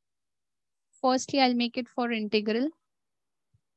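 A woman speaks calmly through an online call microphone.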